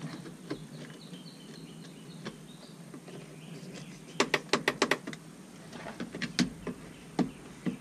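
Plastic door trim clicks and snaps as it is pulled loose.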